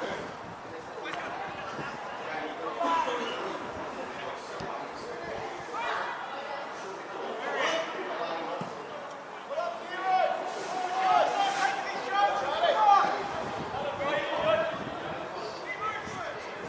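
Players shout to one another across an outdoor pitch.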